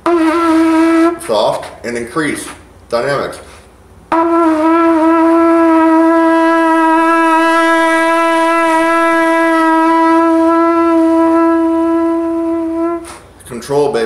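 A trumpet plays a long, steady held note close by.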